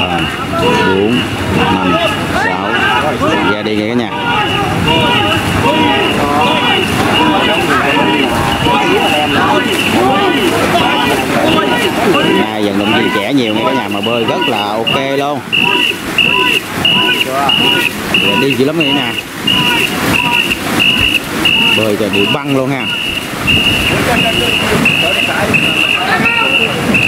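Many paddles splash in the water in a steady rhythm.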